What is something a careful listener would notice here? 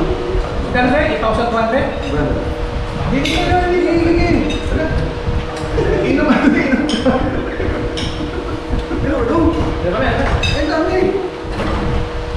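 Dishes and cups clink on a table.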